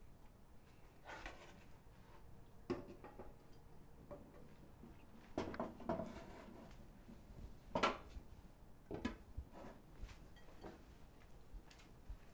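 A man speaks in a low, calm voice nearby.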